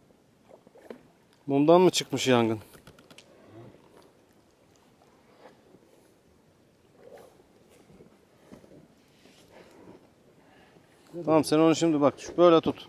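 Water laps softly against a small boat.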